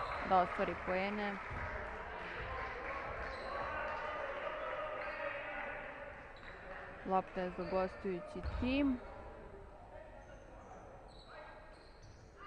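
A small crowd murmurs in a large echoing hall.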